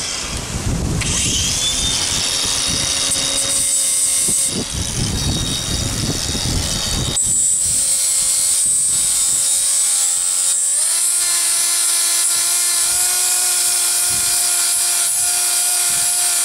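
An angle grinder runs with a high, steady whine.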